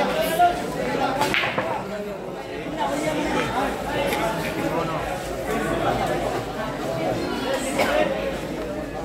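Billiard balls click together on a pool table.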